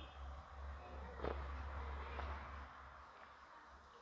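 A man gulps water from a plastic bottle.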